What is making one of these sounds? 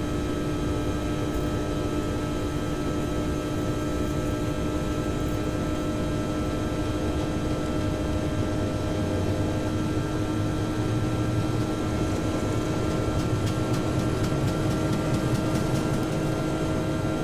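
Aircraft wheels rumble along a runway.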